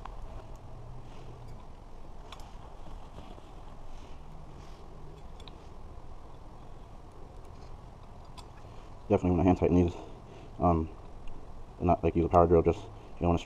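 Small metal nuts click as they are fastened by hand onto a brake rotor.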